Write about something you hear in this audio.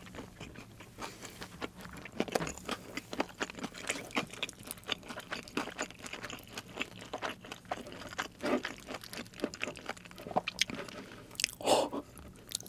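Crispy fried chicken crunches loudly close to a microphone.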